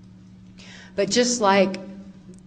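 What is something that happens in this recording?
A woman speaks clearly into a microphone, heard through a loudspeaker.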